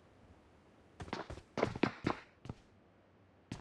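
Footsteps clatter on metal stairs.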